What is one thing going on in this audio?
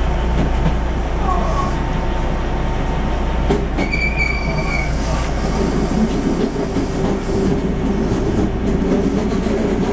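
Train wheels clatter over rail joints.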